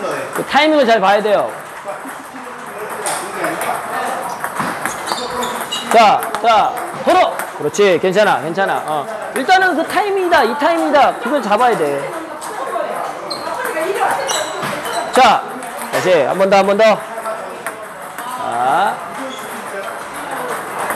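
A ping-pong ball clicks back and forth off paddles and a table.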